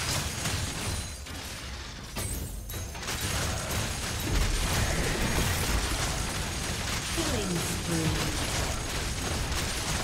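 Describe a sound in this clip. Game spells crackle and weapons clash in a fast battle.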